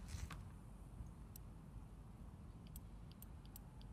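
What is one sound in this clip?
A safe's dial clicks as it is turned.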